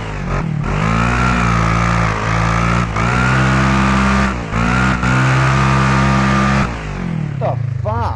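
A truck engine revs hard in bursts, dropping between gear shifts.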